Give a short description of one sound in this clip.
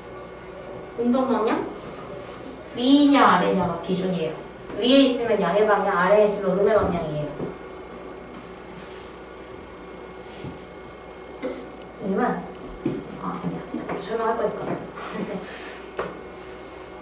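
A young woman speaks calmly into a nearby microphone, in pauses.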